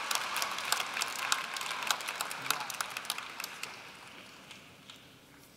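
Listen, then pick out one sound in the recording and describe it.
A crowd claps and then fades away.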